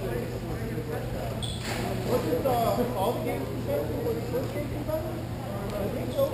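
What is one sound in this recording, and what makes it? Plastic wheels roll and scrape on a hard floor in a large echoing hall.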